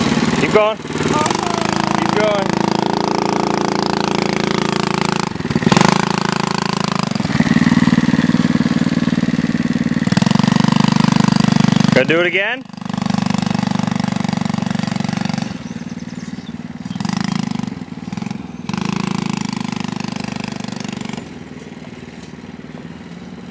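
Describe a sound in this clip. A small quad bike engine buzzes and revs, growing fainter as it drives away.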